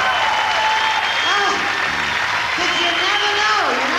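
A woman speaks through a microphone over a loudspeaker.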